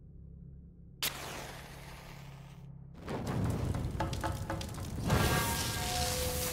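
A fire flares up and roars.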